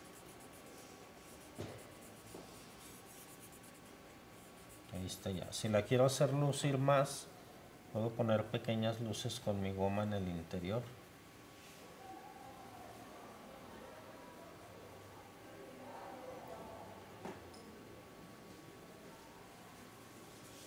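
A graphite pencil scratches softly as it shades on paper.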